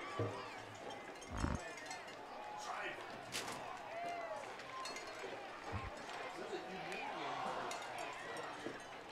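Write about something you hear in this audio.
Football players shout together in a huddle.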